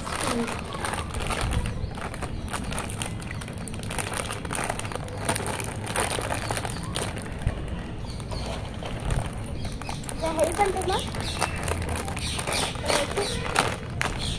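A chip packet crinkles and rustles as a boy opens it.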